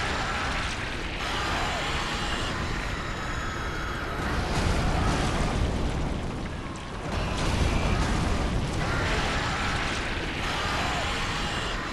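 Fire bursts and roars in sudden gusts.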